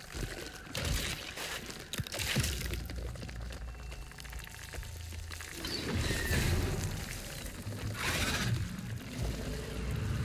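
A large creature snarls and screeches.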